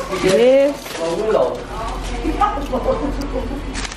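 Foil crinkles as a wrapped sandwich is handled.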